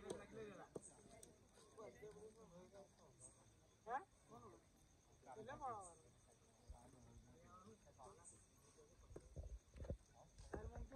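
Young men shout and call out across an open field outdoors.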